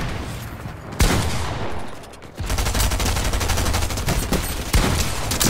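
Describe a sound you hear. Gunshots crack sharply in a video game.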